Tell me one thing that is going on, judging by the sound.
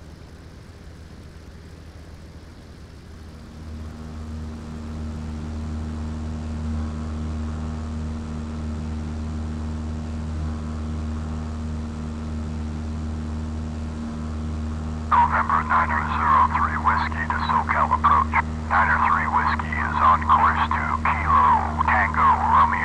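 A propeller plane's engine drones steadily, growing louder after a few seconds.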